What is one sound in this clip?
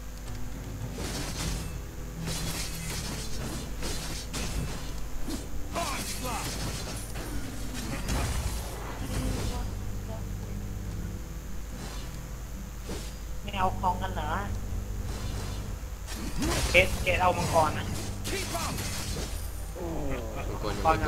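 Sword strikes whoosh and clash in a video game fight.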